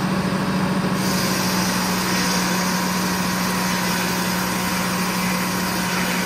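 A large circular saw whines as it cuts through a log.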